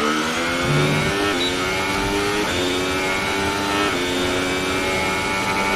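A racing car engine screams at high revs, climbing in pitch and dropping briefly with each gear change.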